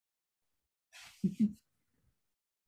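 A middle-aged woman makes a short murmur, heard through an online call.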